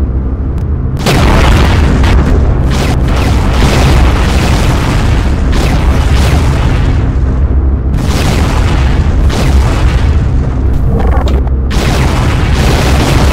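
Large explosions boom and roar.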